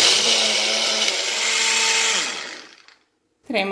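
A blender whirs loudly and then stops.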